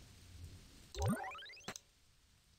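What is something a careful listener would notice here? A quick electronic chime rises in pitch.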